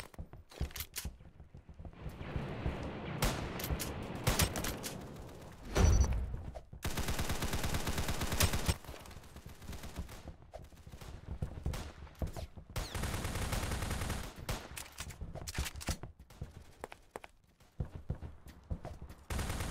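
Gunfire from a video game rattles in rapid bursts.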